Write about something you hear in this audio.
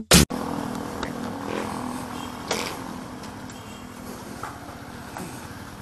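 A scooter engine idles close by.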